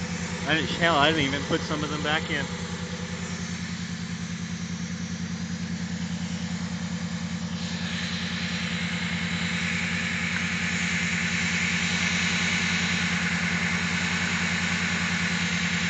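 A car engine idles, heard close through the open oil filler.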